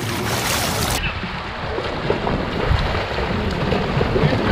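Swimmers splash in water farther off, outdoors.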